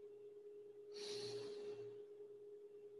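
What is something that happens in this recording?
A man breathes out hard with effort.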